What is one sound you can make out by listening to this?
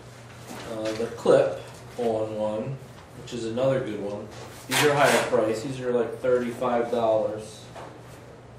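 A middle-aged man talks nearby in a casual voice.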